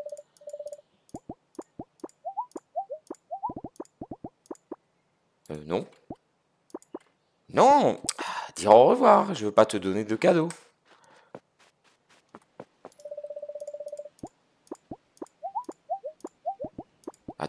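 Soft game menu clicks tick as options are picked.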